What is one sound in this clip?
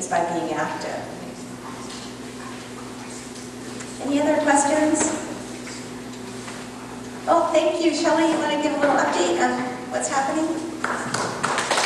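A woman speaks calmly into a microphone, heard through a loudspeaker in a large room.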